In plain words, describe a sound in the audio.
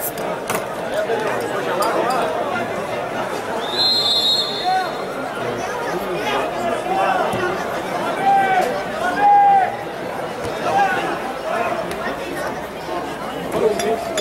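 A crowd murmurs and calls out in an open-air stadium.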